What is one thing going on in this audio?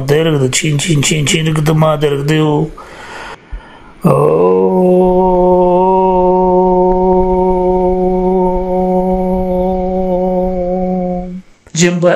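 A man's voice moans in long, steady held tones over an online call.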